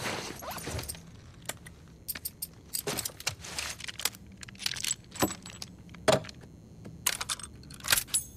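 Metal gun parts click and clack as a pistol is handled.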